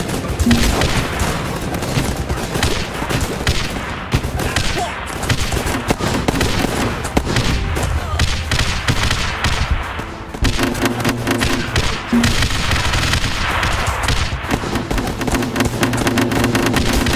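Guns fire rapidly in a battle.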